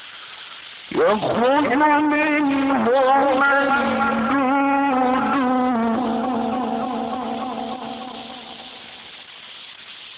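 An elderly man chants in a long, wavering voice.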